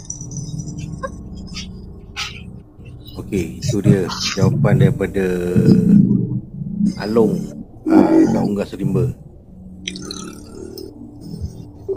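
A young man talks calmly over an online call.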